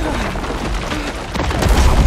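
A young man cries out in alarm.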